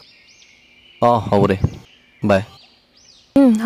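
A young man talks on a phone close by.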